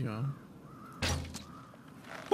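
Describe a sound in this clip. A crossbow fires with a sharp thwack.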